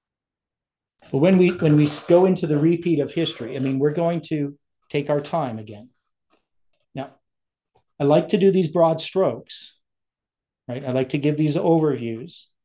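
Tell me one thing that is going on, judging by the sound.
An elderly man talks calmly and with animation into a microphone, close by.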